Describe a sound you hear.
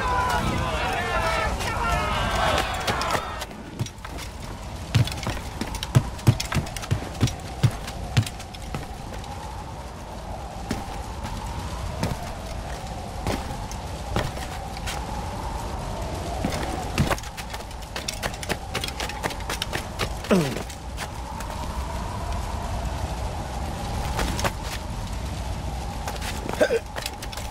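Footsteps thud on wooden stairs and planks.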